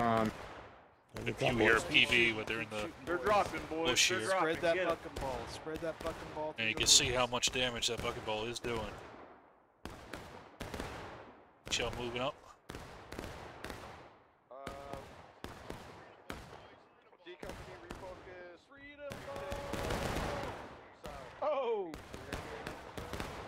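Musket shots crack repeatedly, echoing through woods.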